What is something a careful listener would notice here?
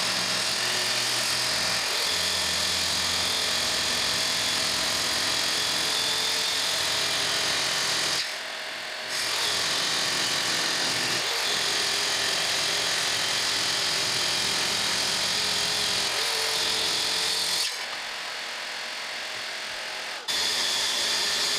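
A power router whines loudly and steadily, stopping briefly twice.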